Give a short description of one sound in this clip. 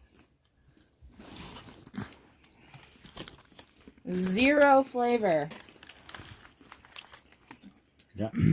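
Crackers crunch and crumble as a young woman breaks them.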